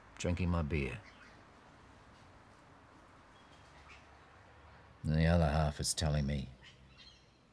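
An elderly man speaks quietly and slowly, close by.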